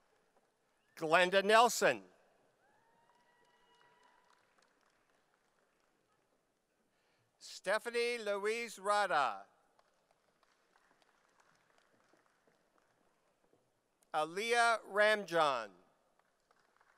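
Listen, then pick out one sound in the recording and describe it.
A man reads out names over a loudspeaker in a large echoing hall, in short bursts.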